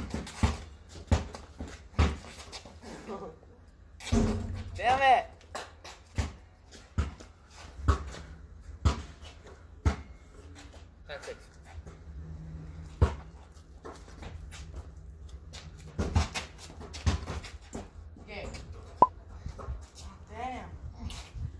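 A basketball bounces repeatedly on concrete.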